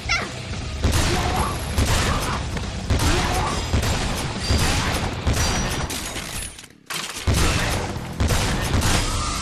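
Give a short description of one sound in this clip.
Weapon blows strike enemies with loud impacts.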